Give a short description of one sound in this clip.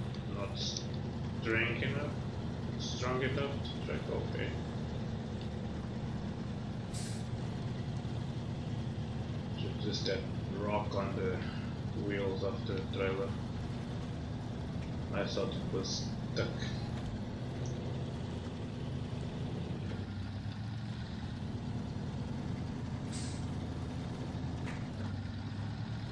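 A heavy truck engine rumbles steadily as it drives slowly.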